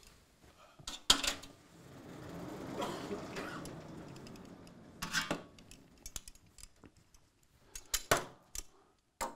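A pointer taps against a chalkboard.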